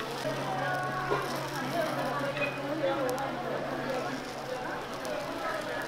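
A metal spatula scrapes and taps on an iron griddle.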